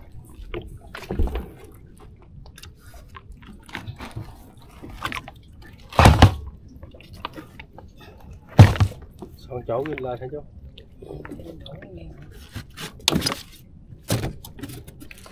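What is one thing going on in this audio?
Gear thumps and knocks against the planks of a wooden boat.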